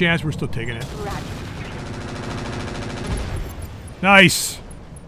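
A missile whooshes through the air.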